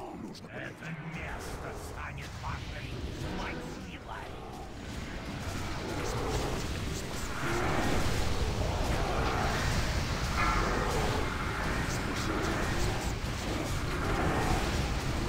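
Magic blasts whoosh and crackle during a battle.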